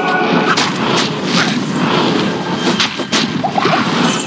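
A pillar of fire roars and crackles.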